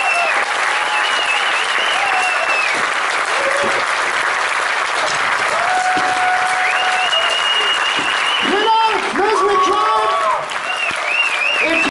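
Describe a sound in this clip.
A harmonica plays a wavering melody loudly through a sound system.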